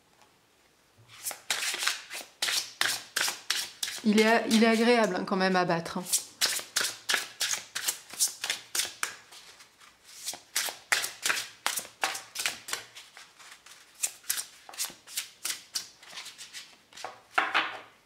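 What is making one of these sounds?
Playing cards are shuffled with quick, crisp flicks and taps.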